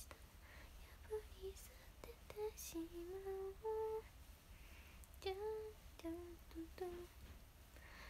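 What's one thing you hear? A young woman hums softly in a high voice.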